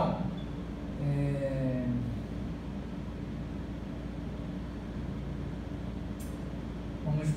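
A man speaks calmly, briefly.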